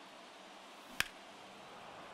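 A bat cracks against a ball.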